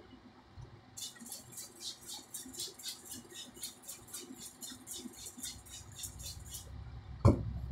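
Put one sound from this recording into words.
A spray bottle sprays water in quick bursts.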